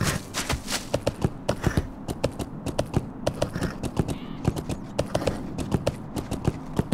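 Horse hooves gallop rapidly over the ground.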